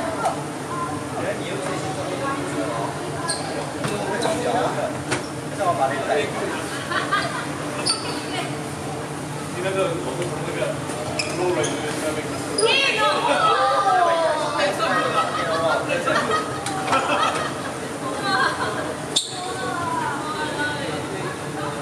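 Many voices chatter around a large echoing hall.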